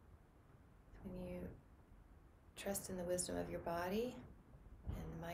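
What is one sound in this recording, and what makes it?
A woman speaks calmly and softly close to a microphone.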